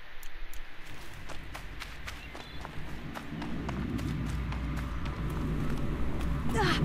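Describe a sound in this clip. Footsteps crunch over grass and stone.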